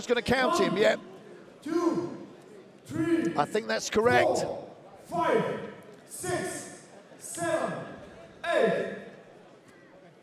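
A man speaks firmly in loud, short bursts.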